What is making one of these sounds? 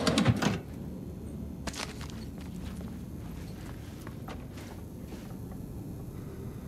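Footsteps tread slowly across a hard floor indoors.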